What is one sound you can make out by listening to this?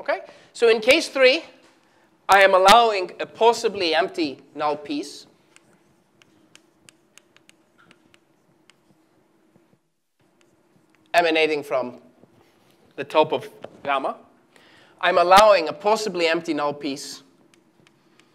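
A man lectures aloud in a room with a slight echo, speaking in bursts with pauses.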